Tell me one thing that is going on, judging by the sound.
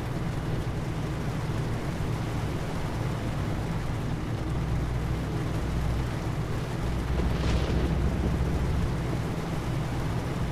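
A truck engine drones steadily while driving at speed.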